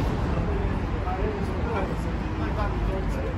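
Young men chat quietly nearby.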